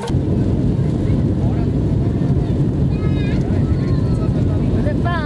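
A jet engine roars steadily with a deep rumble.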